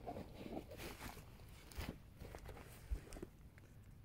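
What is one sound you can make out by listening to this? Footsteps crunch on dry grass close by.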